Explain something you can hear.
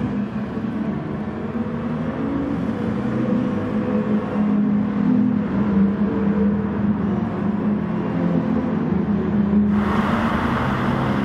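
Racing car engines roar loudly at high revs, rising and falling in pitch.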